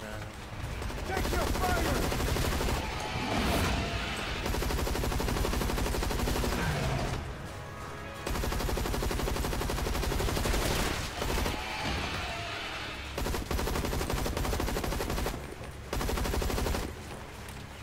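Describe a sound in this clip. A rifle fires.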